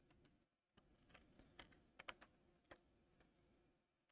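A small circuit board clicks as hands handle it.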